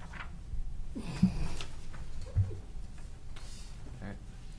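Paper rustles close to a microphone.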